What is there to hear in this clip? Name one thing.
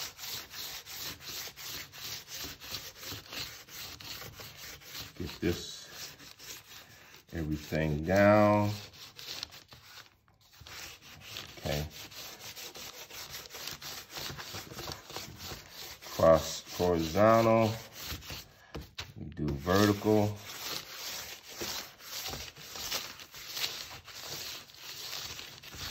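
Hands rub quickly over crinkly paper with a steady, scratchy rustle.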